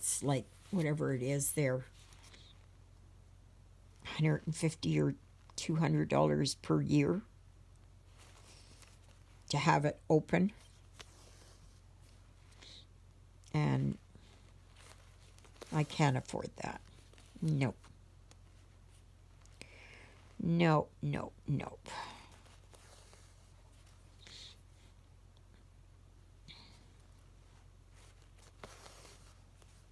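A needle and thread pull softly through stiff canvas.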